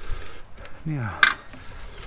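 A metal part clinks as it is moved by hand.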